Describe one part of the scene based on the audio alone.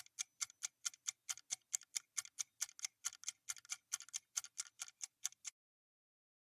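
A timer ticks quickly and steadily.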